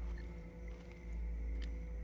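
A campfire crackles.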